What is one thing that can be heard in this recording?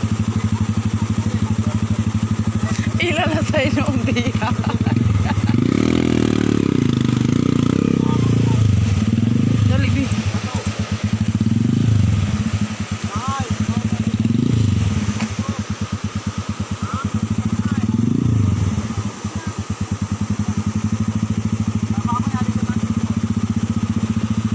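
Floodwater rushes and churns nearby.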